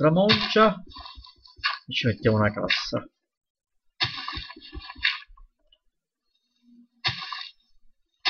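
Dirt crunches in short bursts as it is dug away.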